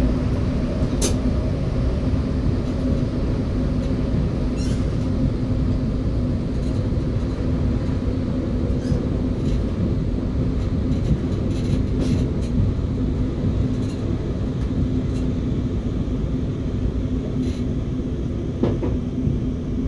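Train wheels click over rail joints now and then.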